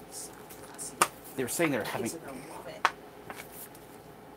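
A plastic bottle cap twists and crackles open.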